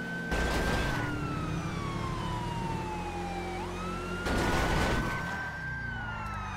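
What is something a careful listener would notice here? A police siren wails close by, its pitch sliding down and up.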